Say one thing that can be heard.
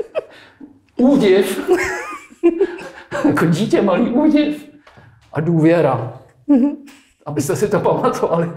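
A middle-aged man talks with animation into a nearby microphone.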